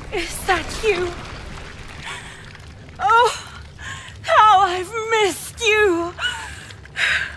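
A woman speaks softly and tenderly, close by.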